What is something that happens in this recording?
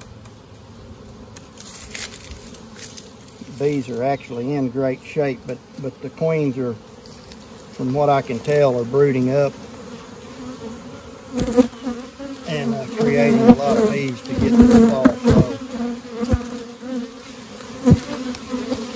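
A wooden hive lid scrapes and knocks as it is lifted off.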